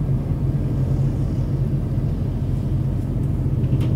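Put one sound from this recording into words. A lorry rumbles past close by.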